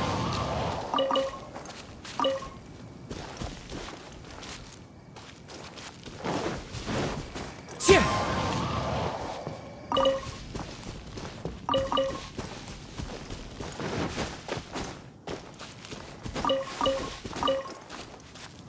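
Short chimes ring.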